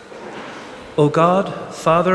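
A man sings out loudly in a large echoing hall.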